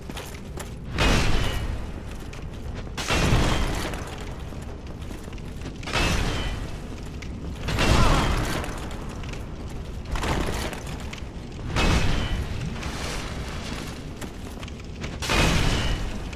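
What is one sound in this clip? Heavy metal weapons clang against armour in repeated loud blows.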